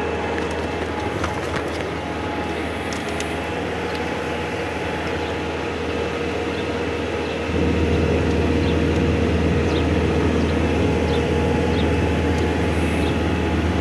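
A vehicle's engine hums steadily as it drives along a rough road.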